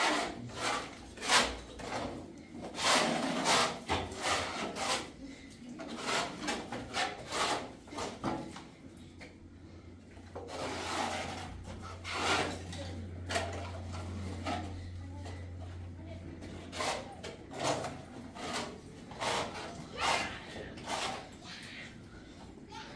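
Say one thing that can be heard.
A trowel scrapes plaster on a wall.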